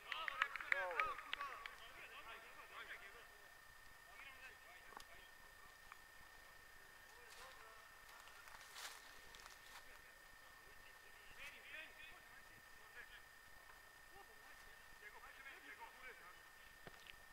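Young men shout to each other in the distance across an open field.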